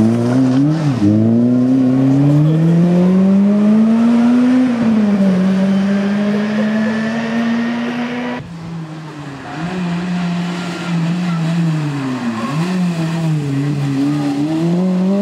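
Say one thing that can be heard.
A rally car engine roars loudly, revving up and dropping as it shifts gears.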